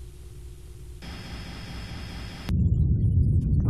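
A spaceship fires rapid blasts in a video game.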